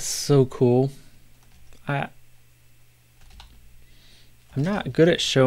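A middle-aged man speaks calmly and close to a microphone, in short bursts.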